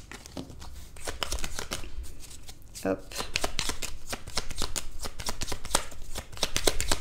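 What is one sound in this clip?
Playing cards riffle and snap as a deck is shuffled by hand.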